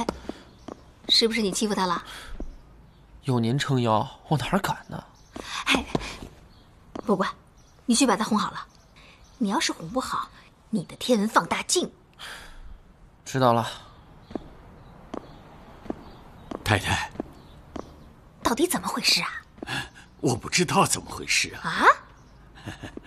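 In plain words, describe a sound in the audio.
A woman speaks sternly nearby.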